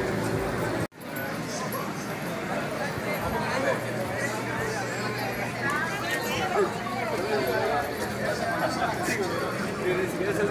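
Men and women talk nearby.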